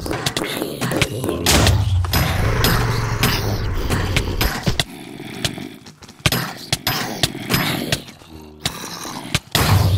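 Video game guns fire in quick sharp shots.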